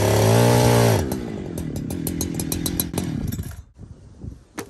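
A chainsaw idles with a rapid, uneven putter.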